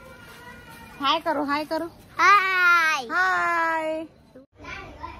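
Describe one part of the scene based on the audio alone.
A young boy calls out loudly close by.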